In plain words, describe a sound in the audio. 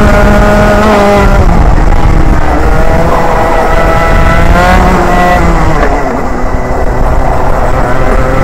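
A two-stroke 125cc racing kart engine screams, revving up and down through corners.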